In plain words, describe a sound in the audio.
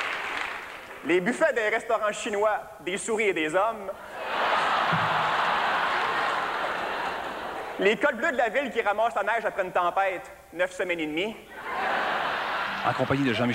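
A man speaks with animation into a microphone on stage.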